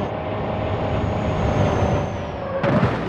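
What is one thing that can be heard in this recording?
A bus engine hums as it drives along.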